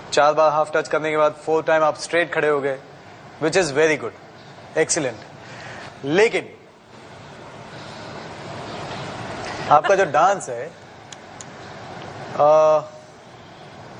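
A young man speaks haltingly into a microphone.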